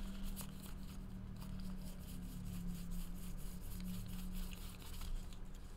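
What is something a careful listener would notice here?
Trading cards flick and rustle as they are shuffled through by hand.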